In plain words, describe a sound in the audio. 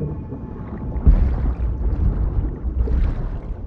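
Water splashes as a body plunges in.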